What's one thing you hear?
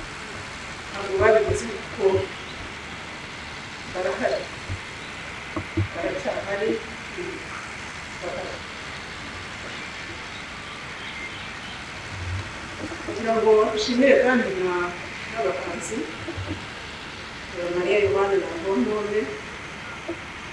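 A woman speaks slowly and calmly into a microphone, outdoors, with long pauses.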